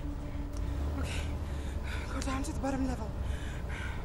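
A young woman cries out in distress inside a moving car.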